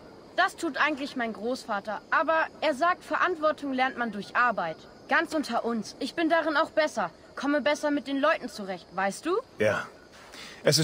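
A boy talks calmly, close by.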